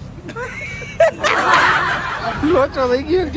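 A young man shouts and laughs loudly close up.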